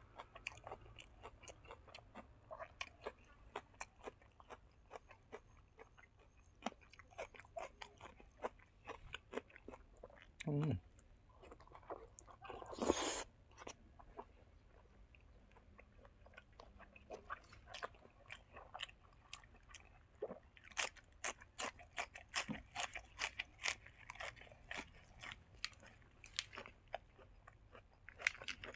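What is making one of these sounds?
A young man chews and smacks his lips loudly, close up.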